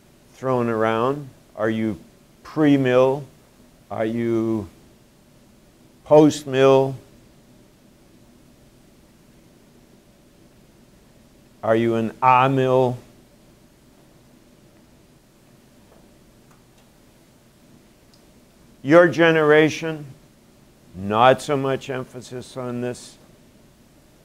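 An elderly man speaks calmly in short phrases with long pauses, in a slightly echoing room.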